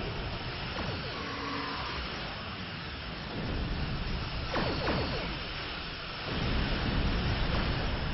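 A laser weapon fires with sharp, falling zaps.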